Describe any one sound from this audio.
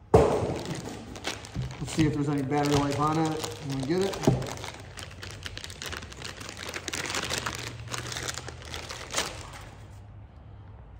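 Plastic packaging crinkles and rustles as it is unwrapped.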